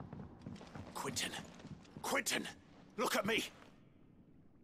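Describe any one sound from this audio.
A young man calls out urgently.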